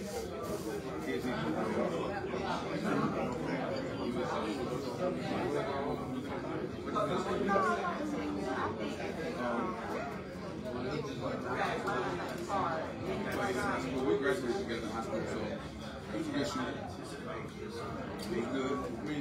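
A man speaks through a microphone, heard over loudspeakers in a large room.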